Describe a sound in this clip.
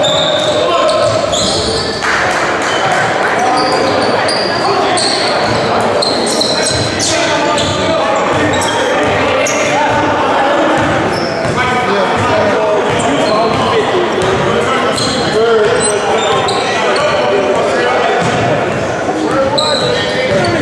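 A crowd of spectators cheers and chatters in a large echoing gym.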